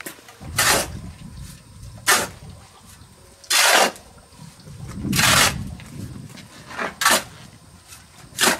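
A shovel scrapes and scoops through sand and cement, in repeated rasping strokes.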